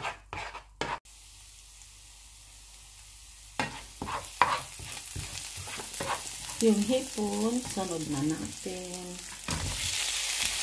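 Butter and garlic sizzle in a hot pan, growing louder.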